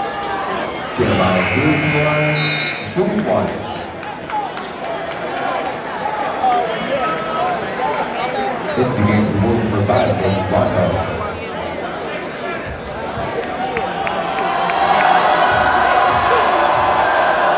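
A large crowd chatters and cheers in an echoing gym.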